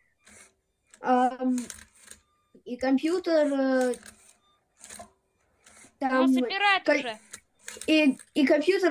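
A young child talks with animation over an online call.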